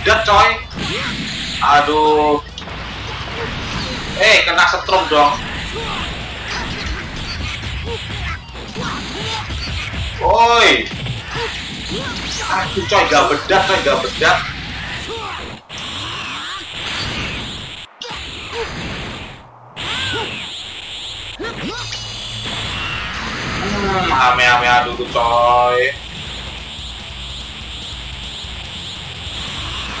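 Game fight sounds of punches and energy blasts crash and roar.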